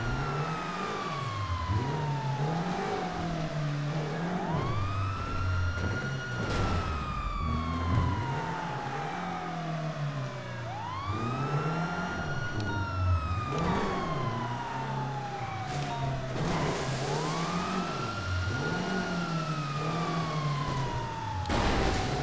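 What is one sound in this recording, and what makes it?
A car engine revs up and down as a car speeds along.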